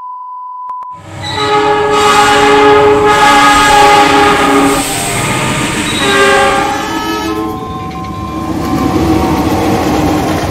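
A diesel locomotive engine rumbles past close by.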